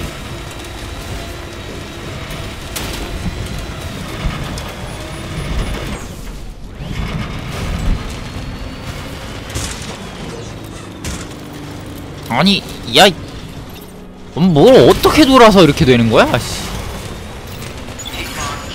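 Tyres crunch and bump over rocks.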